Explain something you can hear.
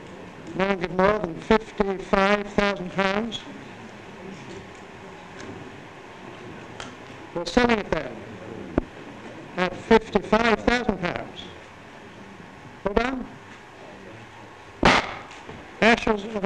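An elderly man gives a speech into a microphone in bursts, with long pauses, in a large echoing hall.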